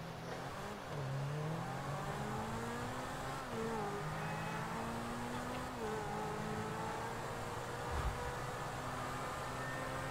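A sports car engine revs loudly, its pitch rising and dropping with each gear change.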